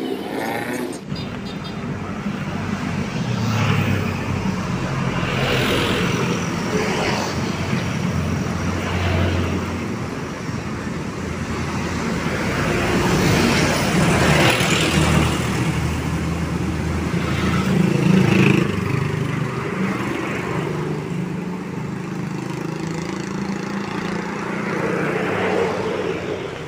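Motorcycles and vans pass by on a road outdoors.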